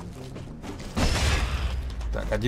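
Heavy blows land with wet, thudding impacts.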